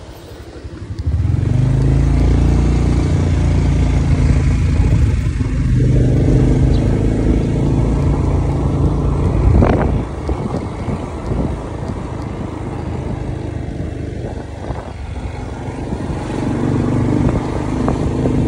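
A motorcycle engine accelerates and runs along a street.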